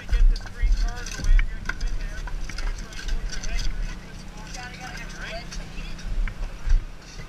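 Men talk to one another nearby.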